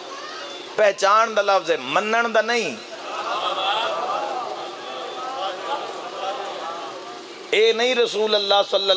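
A man chants loudly and melodically through a microphone and loudspeakers.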